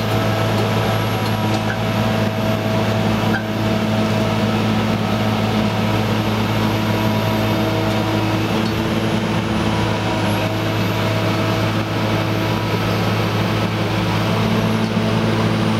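Machinery clanks and rumbles along the track.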